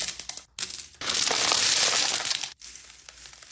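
Small pieces pour and patter into a plastic tub.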